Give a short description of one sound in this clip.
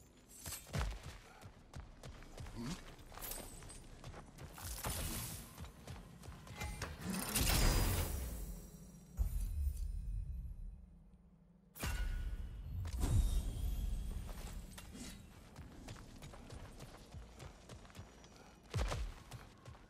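Heavy footsteps thud on grass and rock.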